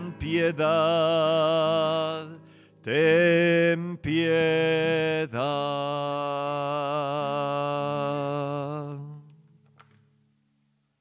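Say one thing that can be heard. An acoustic guitar strums along.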